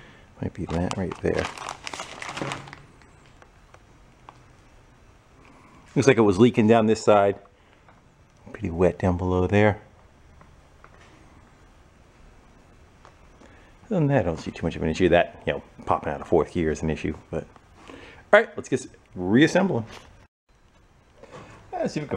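A man talks calmly close by, pausing between phrases.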